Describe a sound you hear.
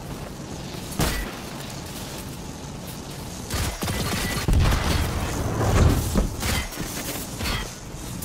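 A rifle fires in loud, sharp bursts.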